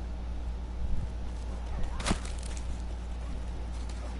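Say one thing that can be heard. A club thuds hard against a body.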